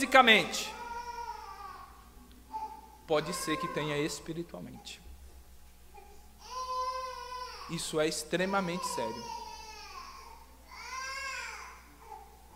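A man speaks calmly through a microphone in a reverberant hall.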